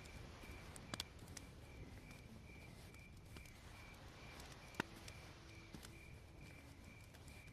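A fire crackles and pops close by.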